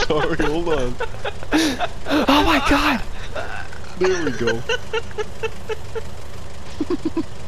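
A forklift engine idles with a low steady hum.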